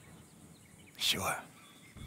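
A man answers in a low, gruff voice, close by.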